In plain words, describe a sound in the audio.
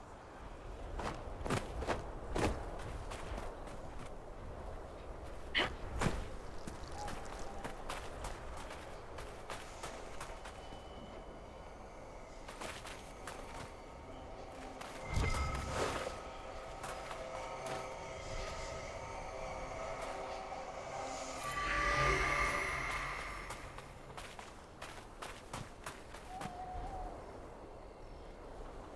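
Footsteps crunch on sand and gravel at an even walking pace.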